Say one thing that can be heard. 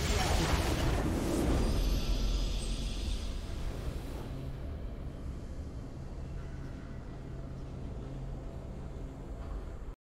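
A triumphant victory fanfare rings out.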